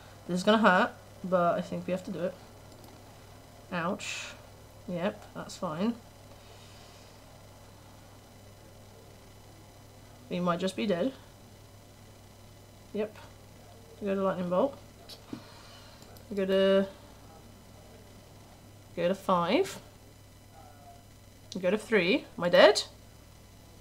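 A young woman talks calmly into a microphone, close by, in short bursts with pauses.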